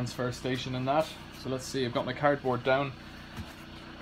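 A plastic jug is set down with a light knock.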